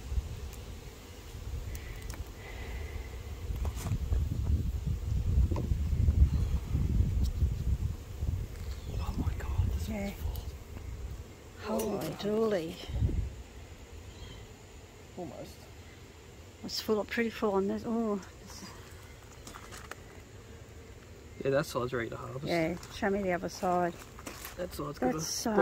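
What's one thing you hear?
Bees buzz around a hive.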